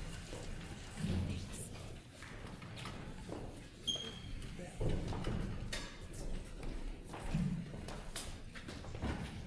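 Music stands and instruments knock and clatter.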